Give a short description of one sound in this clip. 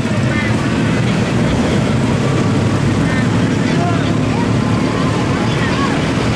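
Motorbike engines hum steadily as a stream of riders passes by outdoors.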